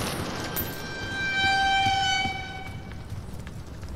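A monster lets out an eerie, ringing wail.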